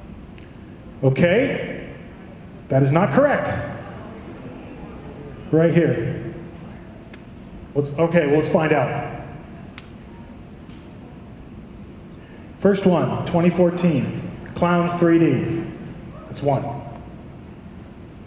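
A man shouts with energy through a microphone and loudspeakers in a large echoing hall.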